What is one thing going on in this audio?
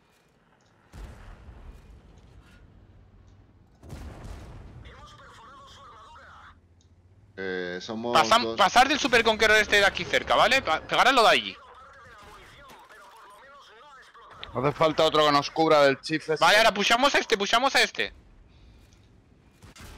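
A tank cannon fires with a heavy boom.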